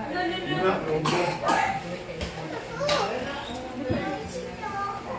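Several women and children chat and talk over each other nearby.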